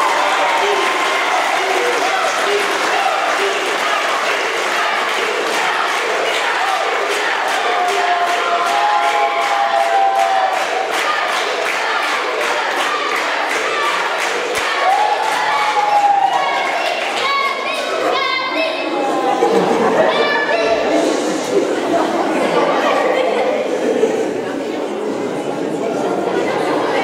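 A large choir of girls and young women sings together.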